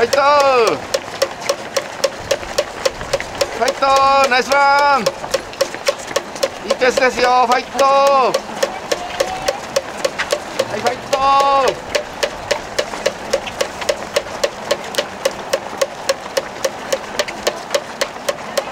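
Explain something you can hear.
Many runners' footsteps patter on pavement.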